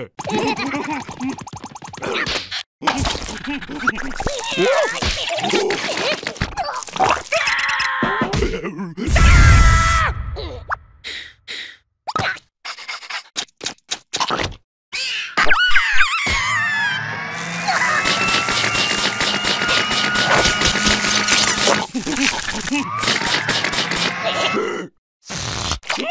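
Small cartoon creatures babble and squeal in high, squeaky voices.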